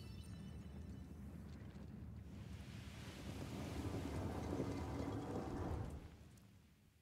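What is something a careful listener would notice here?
A heavy stone rumbles and grinds as it shifts.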